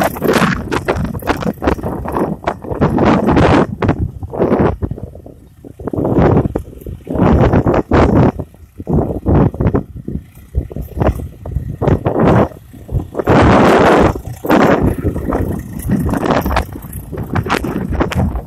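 A tractor engine rumbles steadily in the distance.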